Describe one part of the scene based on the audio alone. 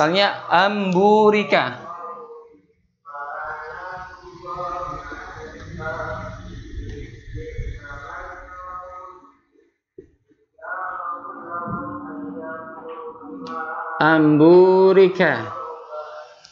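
A man speaks and chants into a microphone, pausing now and then.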